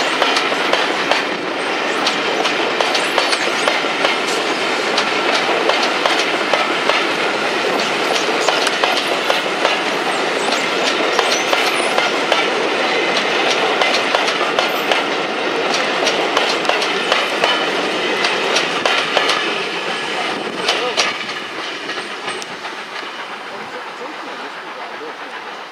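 Railway carriages rumble and clatter past on the track close by, then fade into the distance.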